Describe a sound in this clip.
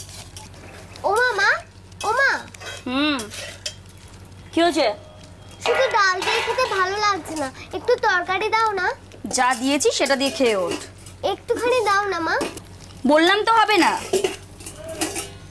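A young girl speaks nearby with feeling.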